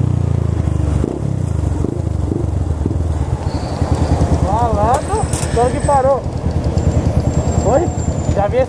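A motorcycle engine idles with a steady throbbing putter.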